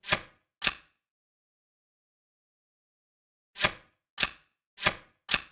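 Cards snap into place with short, sharp clicks.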